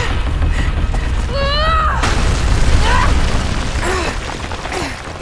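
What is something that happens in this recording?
Rocks crash and tumble down with a deep rumble.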